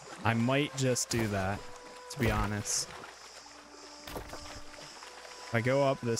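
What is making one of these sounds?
Water splashes gently around a swimmer.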